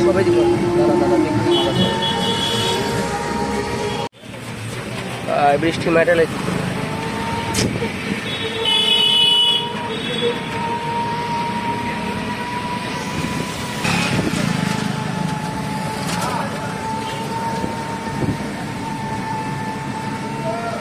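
Wheels hiss and splash along a wet road.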